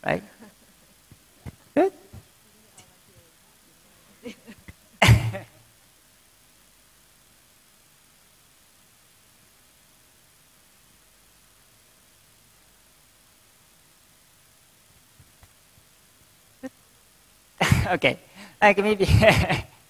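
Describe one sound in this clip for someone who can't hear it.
A young man speaks haltingly into a microphone, with long pauses.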